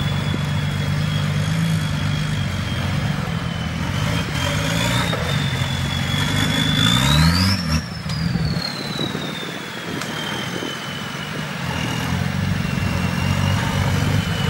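An off-road vehicle's engine idles and revs as it crawls over rocks.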